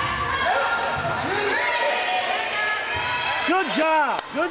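A volleyball is struck with a slap.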